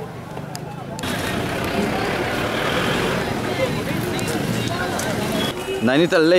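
Crowd chatter and street noise murmur outdoors.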